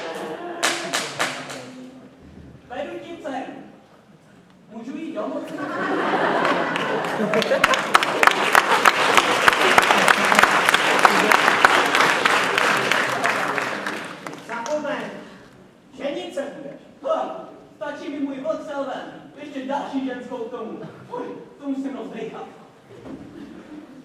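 A teenage boy speaks animatedly in a play voice.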